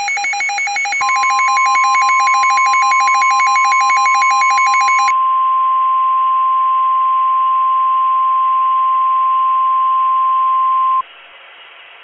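A weather radio sounds a long, steady, high alert tone.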